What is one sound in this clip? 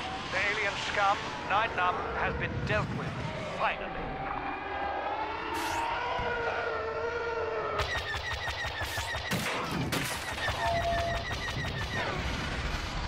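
A starfighter engine roars and whines steadily.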